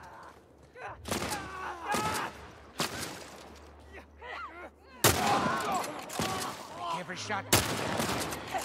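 Gunshots fire sharply a few times.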